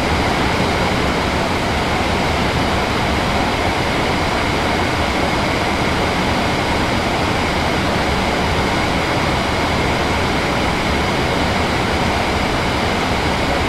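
A train rumbles steadily along the rails at high speed.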